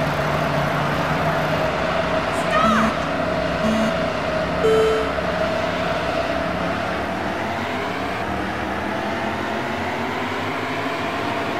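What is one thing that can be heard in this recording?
Racing car engines hum and rev loudly.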